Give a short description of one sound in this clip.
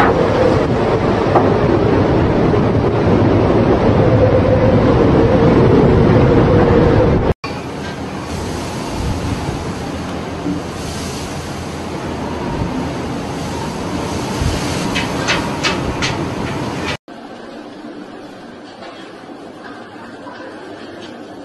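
Strong wind roars over the open sea.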